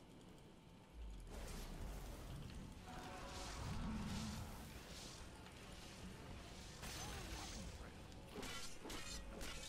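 Game spells and battle effects crackle and whoosh.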